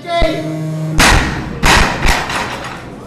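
A heavy barbell crashes down onto the floor and bounces.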